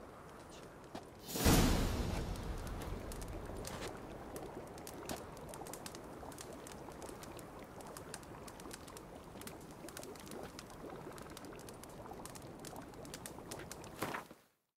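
A small fire crackles and pops.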